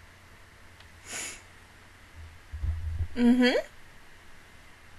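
A young woman laughs briefly and softly, close to a microphone.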